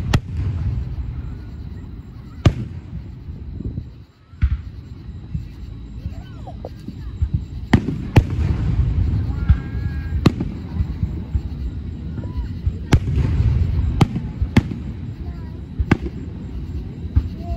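Aerial fireworks burst with sharp bangs in the distance.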